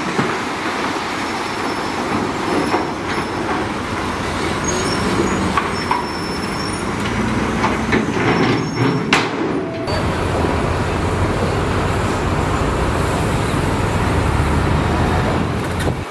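A bulldozer engine rumbles steadily up close.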